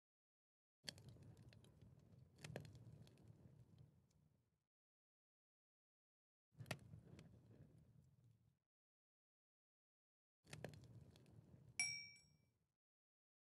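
A furnace fire crackles in short bursts.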